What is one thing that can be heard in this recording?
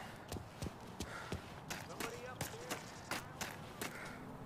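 Footsteps crunch on gravel at a running pace.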